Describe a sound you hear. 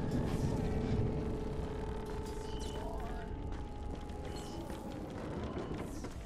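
Footsteps scuff over a hard floor.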